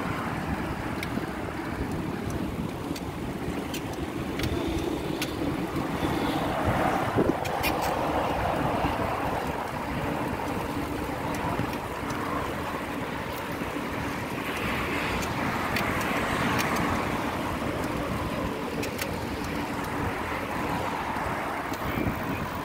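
Small clicks and rattles come from a bicycle.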